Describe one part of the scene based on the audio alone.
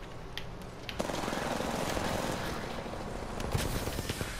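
A charging device hums and crackles.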